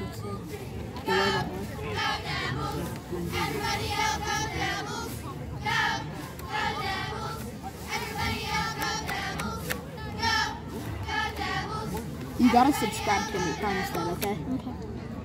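Cheerleaders chant together in rhythm.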